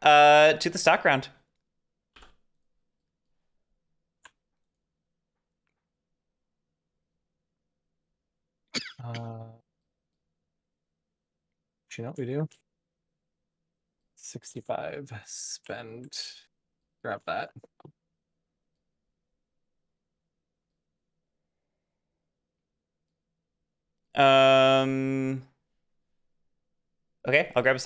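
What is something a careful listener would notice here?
A young man talks through a headset microphone in short bursts, with pauses between.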